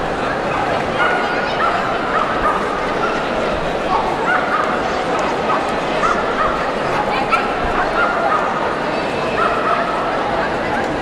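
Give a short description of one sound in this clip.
A woman calls out commands to a dog.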